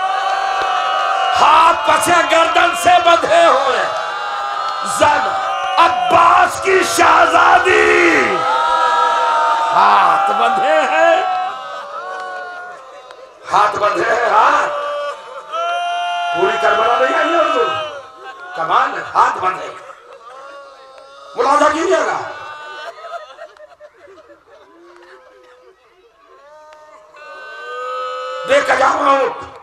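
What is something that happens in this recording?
A man speaks with passion into a microphone, heard through loudspeakers in a large echoing hall, his voice rising to cries and then falling away.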